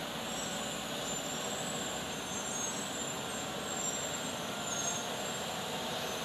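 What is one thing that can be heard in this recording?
A car drives past.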